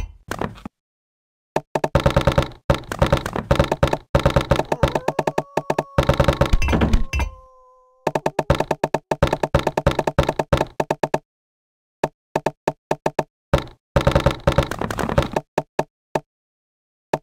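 Building blocks snap into place with rapid, repeated clicking pops.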